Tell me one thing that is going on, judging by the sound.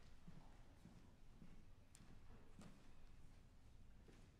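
Footsteps tap across a wooden stage in a large echoing hall.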